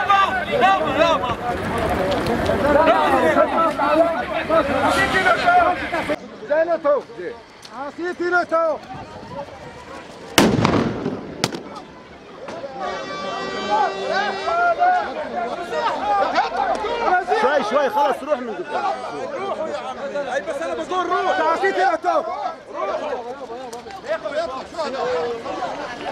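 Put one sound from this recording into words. A crowd of men shout and argue loudly nearby, outdoors.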